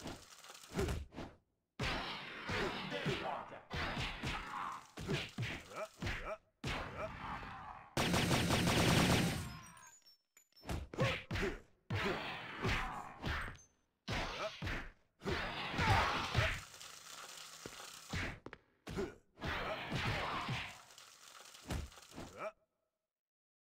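Punches and kicks land with heavy thuds in a fast brawl.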